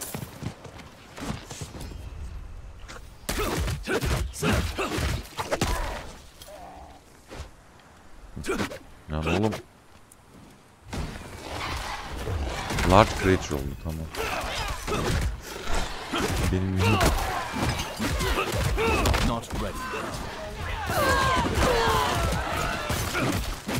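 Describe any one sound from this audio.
A man talks casually and with animation, close to a microphone.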